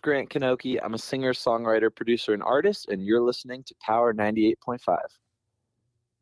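A man speaks clearly and with animation close to a microphone.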